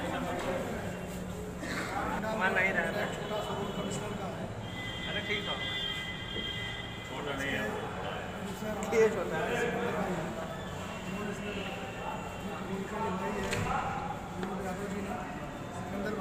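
A crowd of men talks and shouts excitedly all around, close by.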